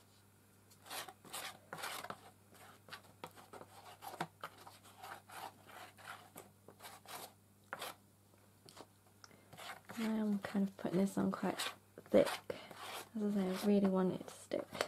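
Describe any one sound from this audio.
A brush swishes and scrapes across cardboard in quick strokes.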